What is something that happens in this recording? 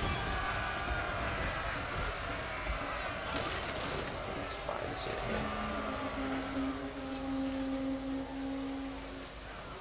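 Many soldiers march and clash in a loud battle din.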